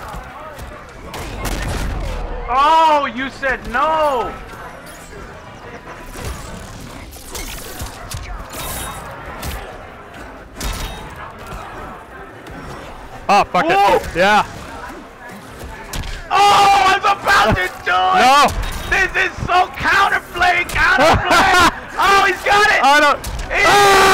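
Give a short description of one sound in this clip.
Punches and kicks thud and crack in a video game fight.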